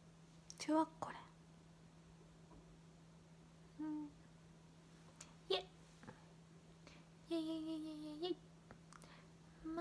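A young woman speaks in short, high, playful bursts close to a microphone.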